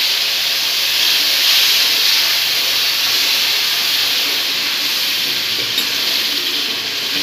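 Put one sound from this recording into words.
A metal spoon scrapes against a metal pan.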